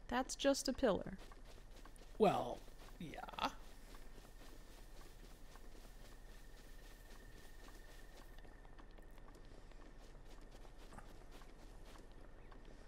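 Footsteps run softly through grass.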